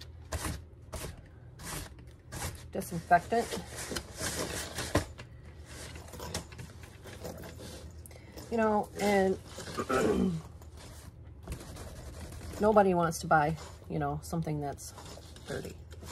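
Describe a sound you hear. Tissue paper rustles and rubs against a bag.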